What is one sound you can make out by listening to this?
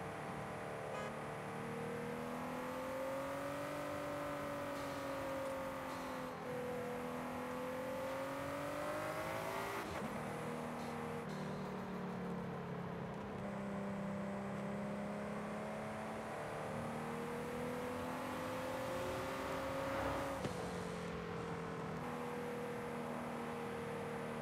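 Tyres hum on smooth tarmac.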